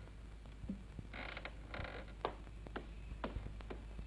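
Footsteps sound on a wooden floor.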